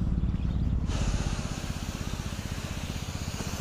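A sprayer hisses steadily as it sprays mist.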